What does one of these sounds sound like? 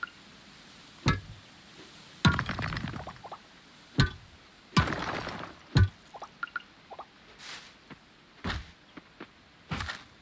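Stones clack as a game character gathers rocks.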